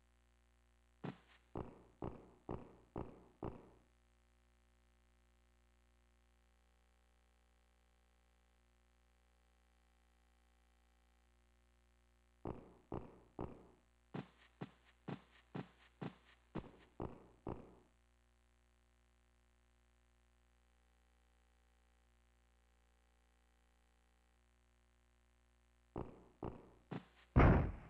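Footsteps tap in an even walking rhythm.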